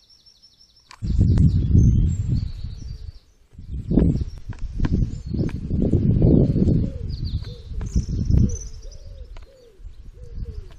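A bird pecks and knocks at a plastic feeder tray.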